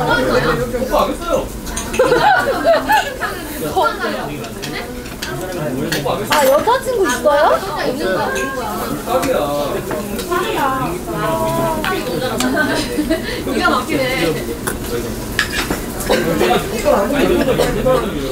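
Young men and women chat and laugh together around a table.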